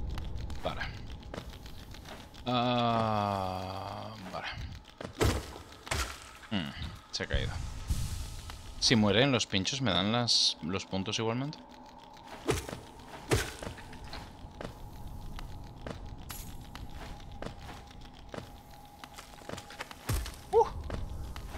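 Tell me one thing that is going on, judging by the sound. Light footsteps patter on stone.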